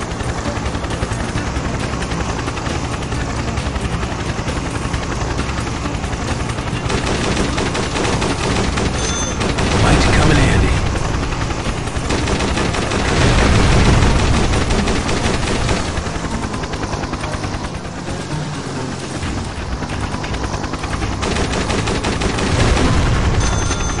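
A heavy machine gun fires in rapid bursts.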